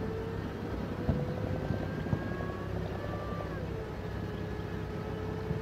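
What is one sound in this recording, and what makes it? A tank engine rumbles and whines steadily.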